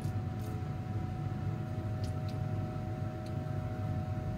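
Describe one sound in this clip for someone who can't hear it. A metal spatula scrapes and taps against glass.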